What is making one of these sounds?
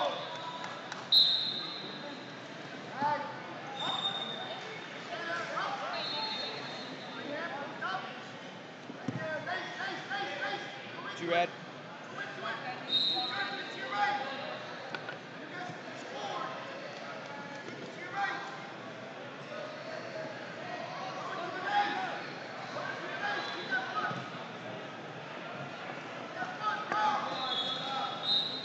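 Spectators shout and call out in a large echoing hall.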